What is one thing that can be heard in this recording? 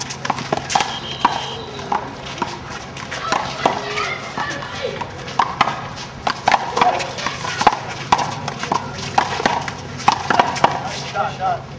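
Sneakers scuff and patter on pavement.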